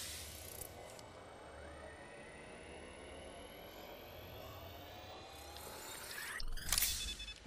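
A high electronic whine rises slowly and steadily.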